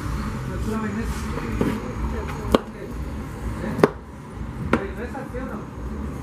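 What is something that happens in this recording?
A knife scrapes and taps against a corn cob on a wooden board.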